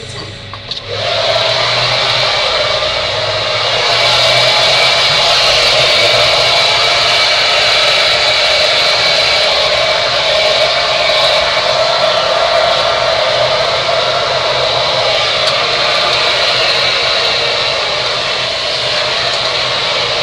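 A hair dryer blows with a loud, steady whoosh close by.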